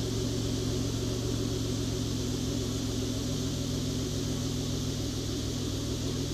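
A car engine idles with a deep, steady rumble from the exhaust close by.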